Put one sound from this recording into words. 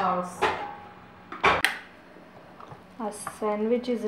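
A sandwich maker's lid clicks open.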